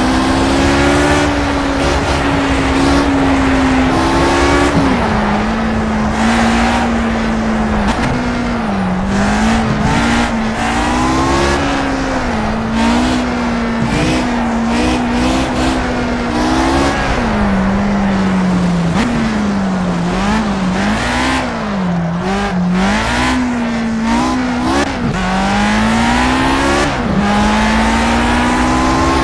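Racing car tyres hum on the track.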